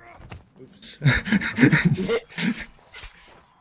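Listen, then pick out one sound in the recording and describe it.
A zombie snarls and growls up close.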